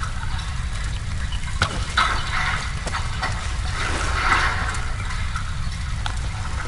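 Fire crackles and hisses nearby.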